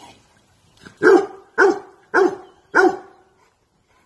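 A large dog barks loudly four times.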